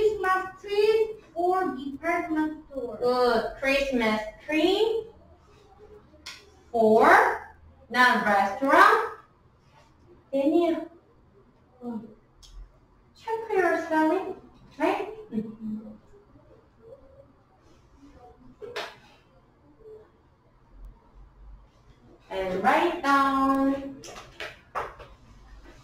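A young woman speaks calmly and clearly, as if teaching.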